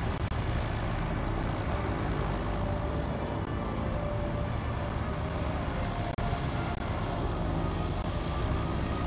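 A propeller engine drones loudly and steadily.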